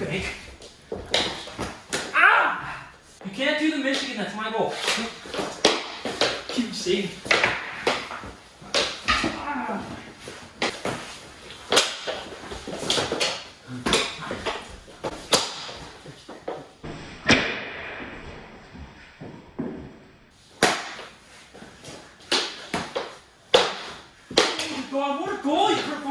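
Plastic hockey sticks clack and scrape on a wooden floor.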